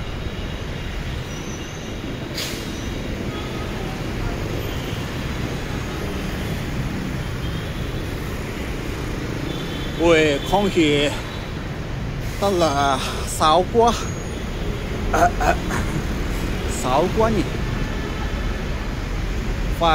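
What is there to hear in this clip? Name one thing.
Motorbikes drive past with buzzing engines.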